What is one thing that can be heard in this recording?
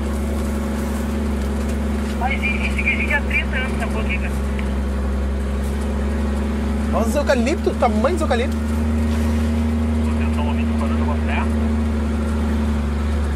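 A vehicle engine hums steadily while driving slowly over a rough dirt track.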